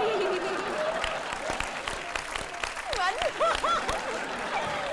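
A young woman claps her hands.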